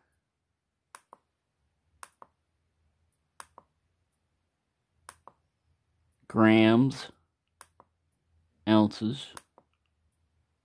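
A small button clicks softly several times.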